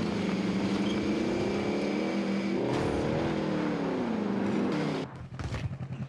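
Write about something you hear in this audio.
A video game off-road truck engine revs and rumbles.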